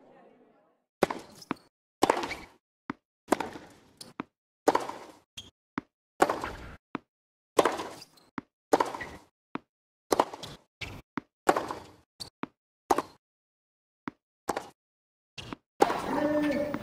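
A tennis ball is hit back and forth with rackets in sharp, regular smacks.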